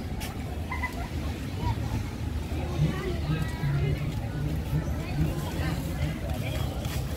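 Men and women chat in the open air nearby.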